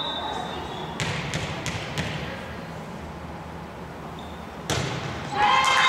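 A volleyball is struck with hard slaps.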